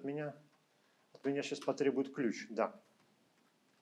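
A man speaks calmly into a microphone, heard as if over an online call.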